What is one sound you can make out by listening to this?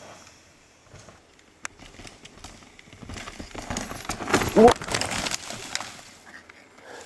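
Bicycle tyres roll and skid over a dirt trail.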